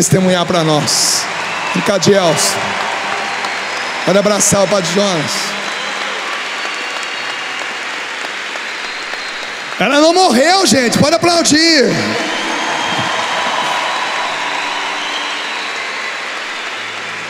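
A large crowd cheers and applauds in a big echoing hall.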